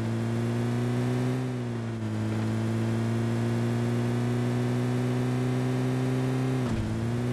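A vehicle engine drones steadily as a car drives along.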